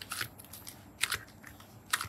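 Slime stretches with a soft sticky tearing sound.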